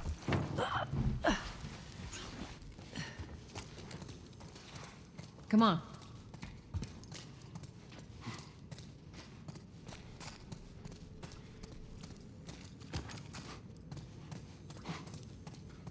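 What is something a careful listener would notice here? Footsteps tread on a hard floor indoors.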